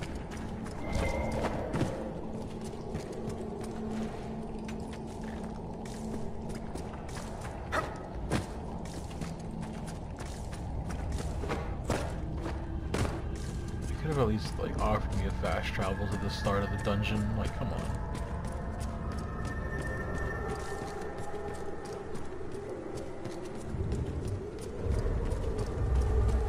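Footsteps crunch steadily over stone and wooden boards.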